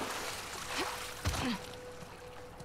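A person lands heavily with a thud.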